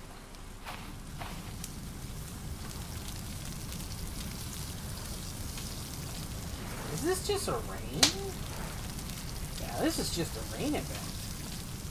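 Waves wash gently against a shore.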